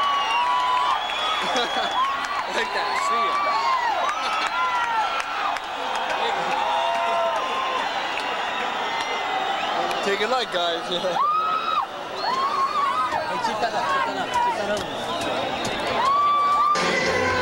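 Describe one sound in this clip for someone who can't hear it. A large crowd screams and whistles loudly.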